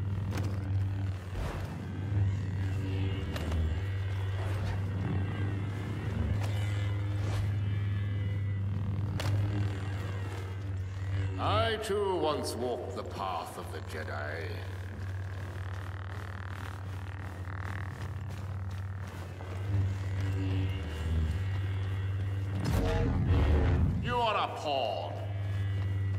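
A lightsaber swishes through the air with sharp crackles.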